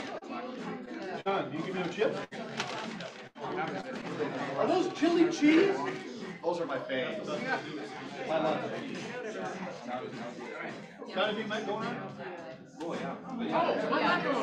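A middle-aged man talks with animation.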